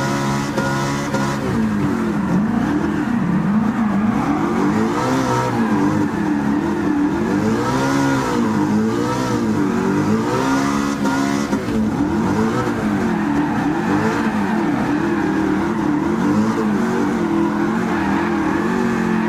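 A car engine roars loudly, revving up and down as gears shift.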